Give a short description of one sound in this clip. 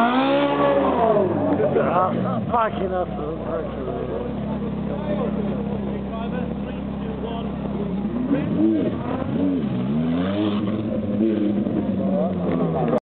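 A sports car engine revs loudly, rising and falling.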